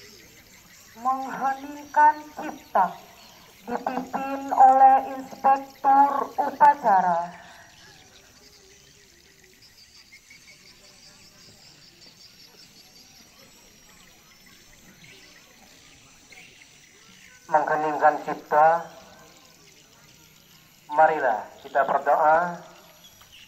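A man shouts commands through a loudspeaker outdoors.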